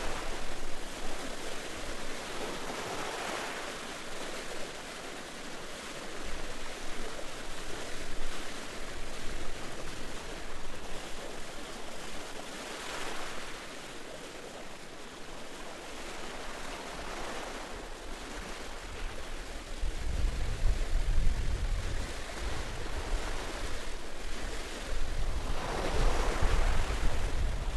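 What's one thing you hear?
Waves wash onto a shore in slow swells.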